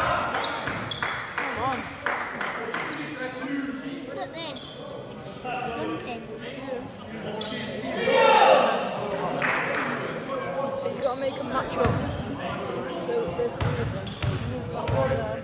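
Players and spectators call out and chatter in a large echoing hall.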